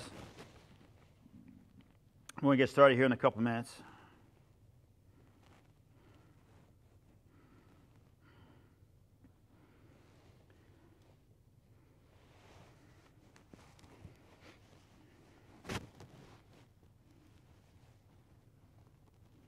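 A belt rustles as a man unties it.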